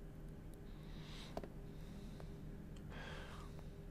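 A phone is picked up from a wooden table with a soft knock.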